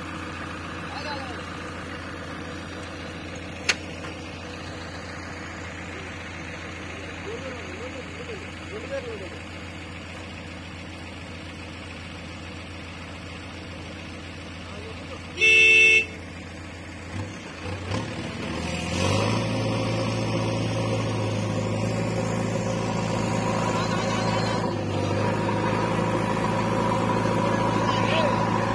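A diesel engine idles and rumbles steadily close by.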